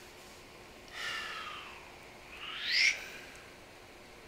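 A desk lamp's metal arm creaks and squeaks as it is moved.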